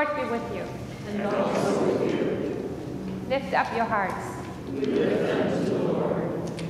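A congregation responds together in unison.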